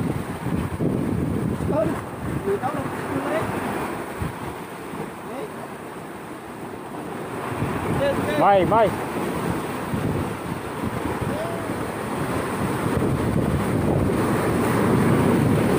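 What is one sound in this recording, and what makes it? Waves crash and surge against rocks outdoors.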